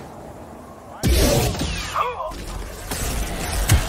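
Laser swords hum and clash loudly.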